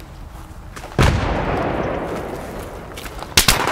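An explosion booms and rumbles close by.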